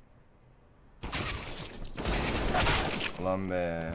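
Gunshots ring out in a rapid burst.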